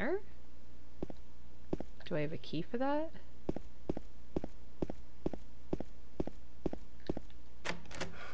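Footsteps echo in a hallway.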